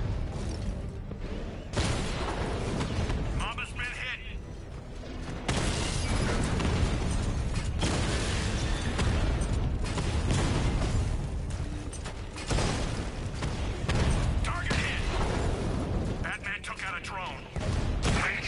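A heavy armoured vehicle rumbles and roars as it drives.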